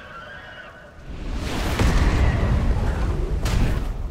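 A creature roars loudly.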